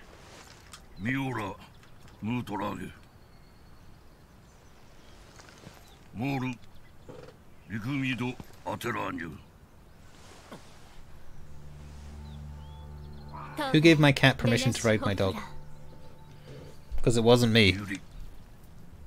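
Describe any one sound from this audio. An older man speaks gravely and slowly.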